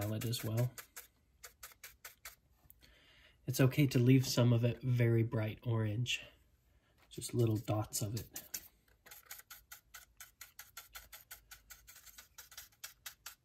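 A stiff brush scrubs rapidly across a hard surface.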